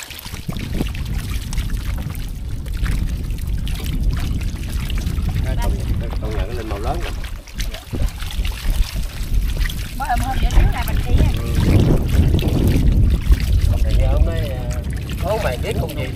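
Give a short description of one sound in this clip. Fish flap and thrash in shallow water.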